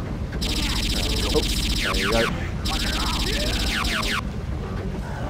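An electronic alarm beeps in fast, rapid pulses, stopping briefly and then starting again.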